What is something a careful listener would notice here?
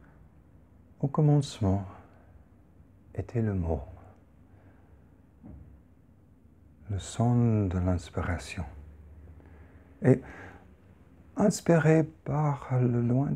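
A man speaks calmly and slowly, close to a microphone, with pauses.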